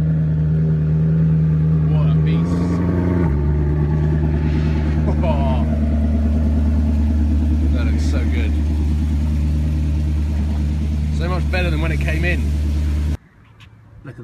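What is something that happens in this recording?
A car engine idles with a deep, loud rumble, then cuts off.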